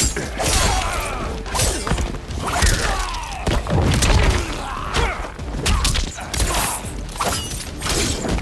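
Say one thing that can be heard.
Fighters grunt and shout as they strike.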